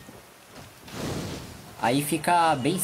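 A fireball bursts with a roaring whoosh.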